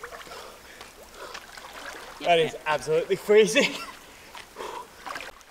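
A man splashes while swimming in water.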